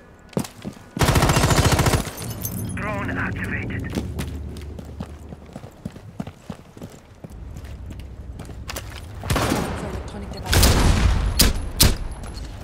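A rifle fires loud rapid bursts of shots.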